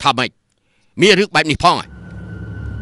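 A second man asks sharply in surprise.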